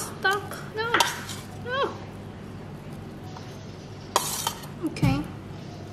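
A metal spoon scrapes against a metal bowl.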